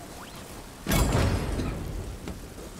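A heavy metal thud booms and rumbles.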